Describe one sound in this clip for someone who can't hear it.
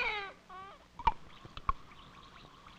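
Tablets plop into glasses of water.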